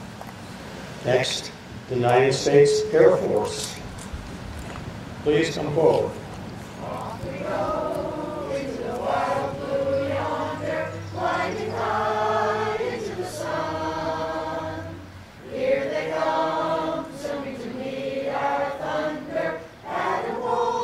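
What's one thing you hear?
A man speaks steadily into a microphone, heard through loudspeakers outdoors.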